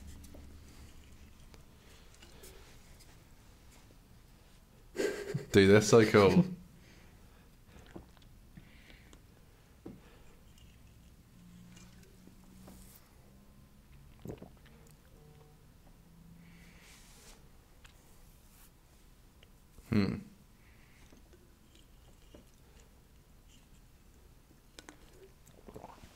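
A man gulps a drink close to a microphone.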